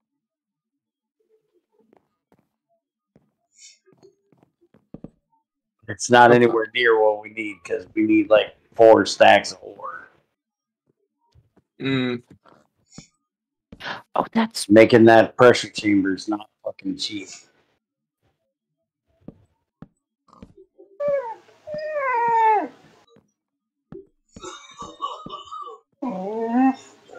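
A pig grunts nearby.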